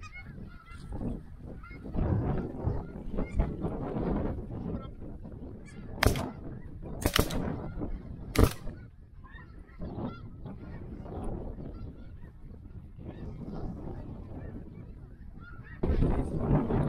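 Many geese honk and call overhead.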